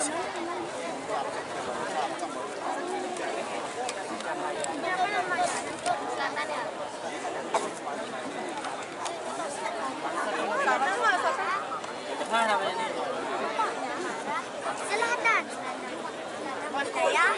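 A large choir of women sings together on a stage.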